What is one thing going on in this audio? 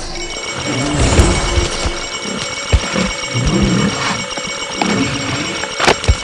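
A large creature growls deeply.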